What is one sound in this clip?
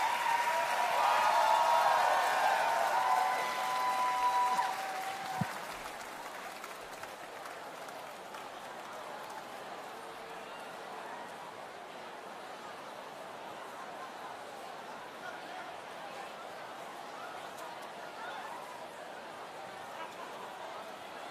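A large crowd cheers and murmurs in a big echoing hall.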